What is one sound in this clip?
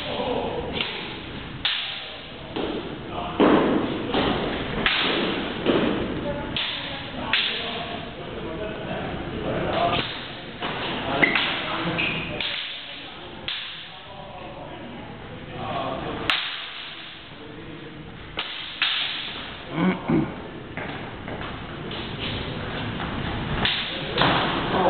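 Footsteps shuffle and stamp on a hard floor.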